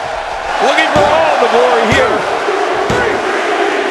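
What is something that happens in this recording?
A referee slaps the mat three times in a steady count.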